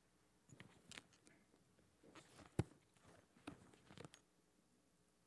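Handling knocks and thumps come through a microphone.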